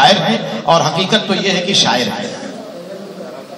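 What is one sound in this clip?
An elderly man speaks into a microphone over a loudspeaker.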